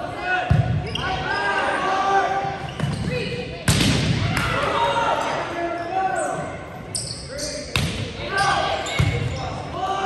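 A volleyball is struck with sharp smacks in a large echoing gym.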